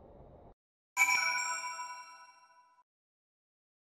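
A bright electronic chime rings and slowly fades.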